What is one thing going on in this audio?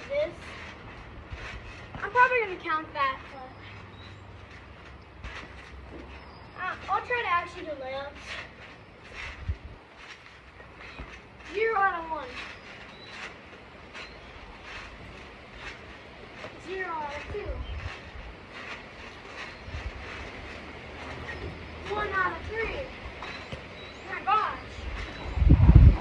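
A trampoline thumps and creaks as a child bounces on it.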